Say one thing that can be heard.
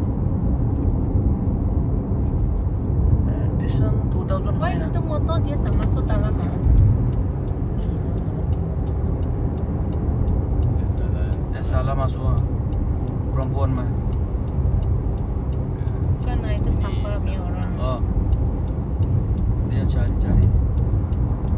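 Road noise and a car engine rumble steadily from inside a moving car.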